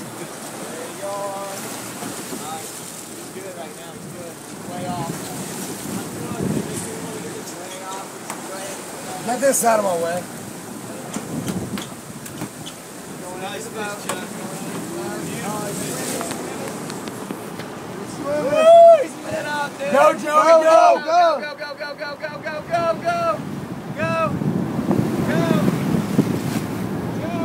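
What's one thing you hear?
A man shouts excitedly nearby.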